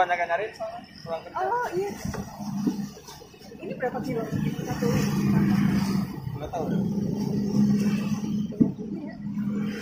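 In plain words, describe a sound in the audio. A knife knocks against a wooden board as it chops through coconut flesh.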